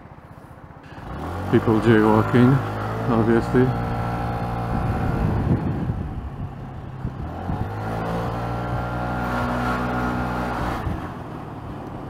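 A scooter engine revs up and hums as the scooter pulls away and rides along the street.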